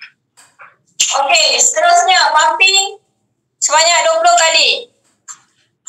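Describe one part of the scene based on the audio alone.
A young woman speaks close to a microphone over an online call.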